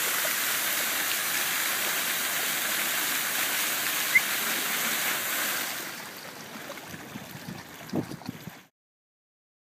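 A dog splashes as it wades through shallow water.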